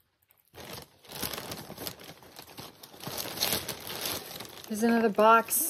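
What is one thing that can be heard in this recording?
Plastic packaging crinkles and rustles loudly close by.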